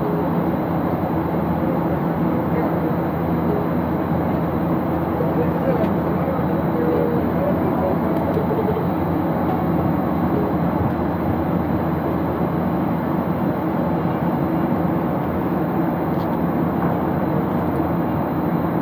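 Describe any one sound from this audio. A jet airliner's engines roar steadily in the cabin.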